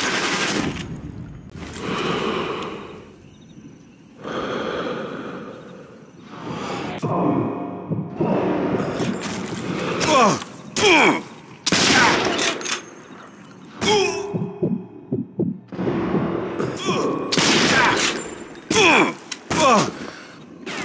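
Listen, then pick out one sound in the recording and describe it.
Rifle shots crack and echo, one at a time.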